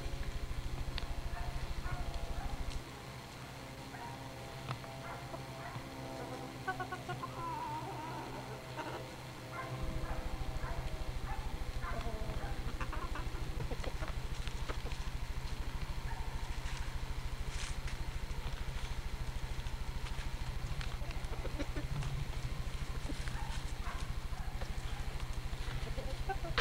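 Chickens cluck softly close by.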